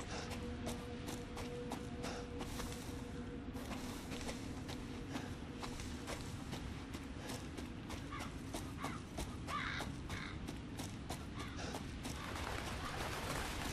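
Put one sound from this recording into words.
Footsteps crunch over dry leaves and soil.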